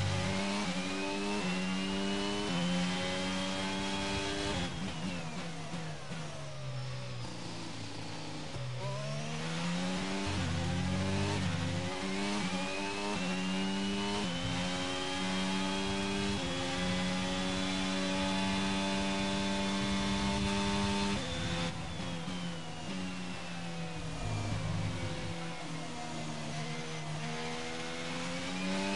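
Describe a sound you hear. A racing car engine screams through the gears, rising in pitch and dropping abruptly with each gear change.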